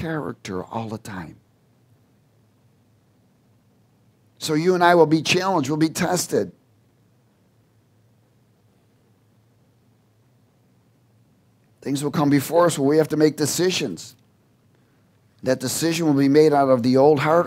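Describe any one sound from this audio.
A man speaks calmly into a headset microphone, pausing often.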